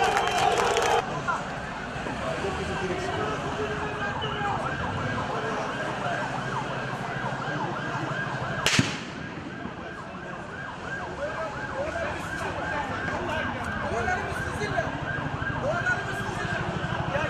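Men talk in hushed, tense voices nearby.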